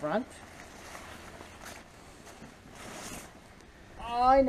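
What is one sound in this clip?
A tarp rustles and flaps as it is shaken out.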